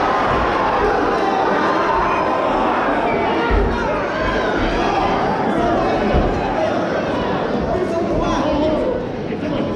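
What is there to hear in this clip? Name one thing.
A crowd cheers and shouts loudly throughout.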